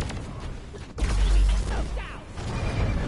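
A blast booms heavily.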